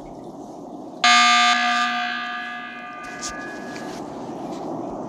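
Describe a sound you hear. A loud electronic alarm chime rings out and slowly fades.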